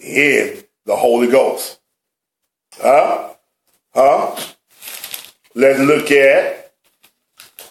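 An elderly man speaks calmly and close by, in short phrases.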